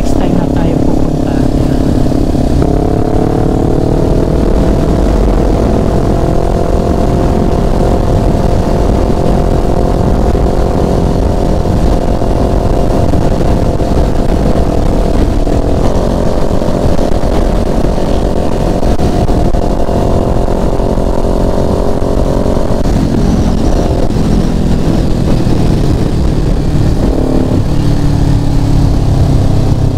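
A motorcycle engine hums steadily up close, its pitch rising and falling with the throttle.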